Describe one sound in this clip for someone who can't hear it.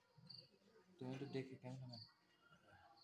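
An elderly man chants softly nearby.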